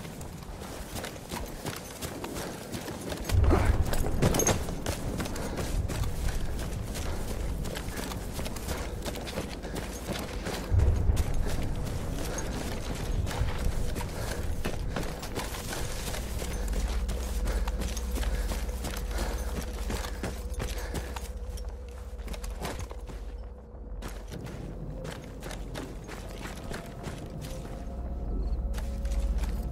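Footsteps run quickly over grass and gravel.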